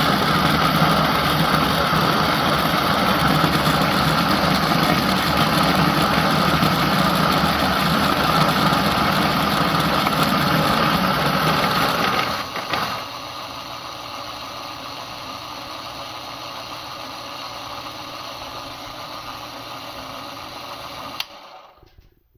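An electric burr coffee grinder grinds coffee beans.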